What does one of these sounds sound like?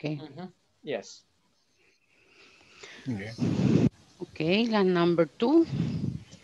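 A woman speaks through an online call.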